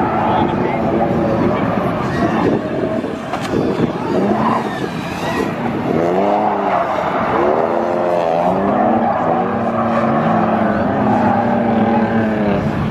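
A car engine revs hard and rises and falls in pitch.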